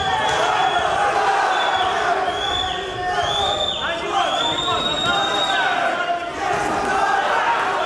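Boxing gloves thud against a body as two fighters trade punches.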